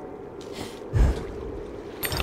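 Leaves burst apart with a whoosh.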